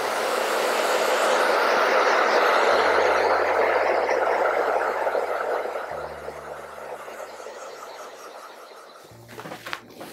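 A hair dryer blows with a steady rushing roar.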